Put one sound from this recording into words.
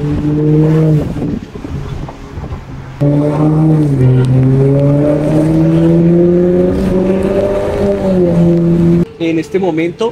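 A car engine roars and its pitch slowly rises as it revs.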